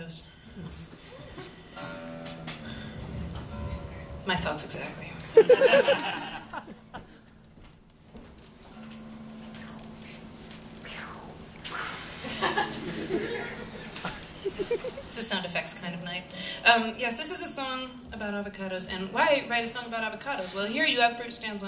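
A man strums an acoustic guitar.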